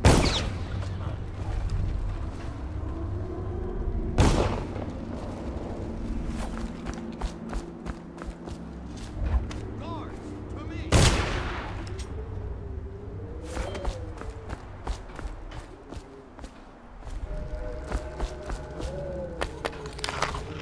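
Footsteps thud and creak on wooden boards.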